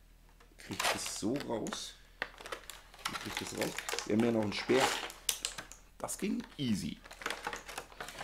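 Plastic packaging crinkles as it is torn open.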